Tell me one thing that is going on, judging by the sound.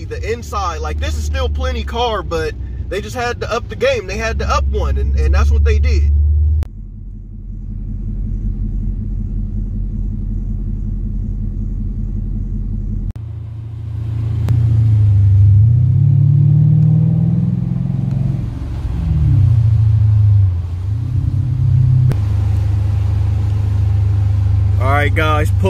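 A car engine hums steadily, then revs as the car speeds up.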